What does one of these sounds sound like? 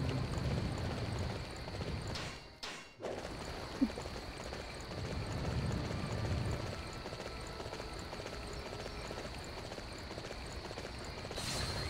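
A horse gallops, hooves thudding on soft ground.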